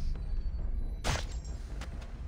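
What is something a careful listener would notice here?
A short sharp hit lands with a thud.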